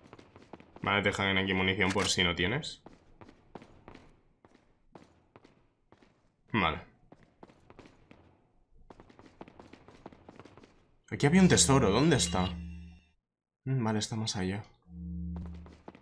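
A young man talks casually into a close microphone.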